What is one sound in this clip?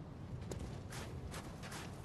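Footsteps clatter on roof tiles.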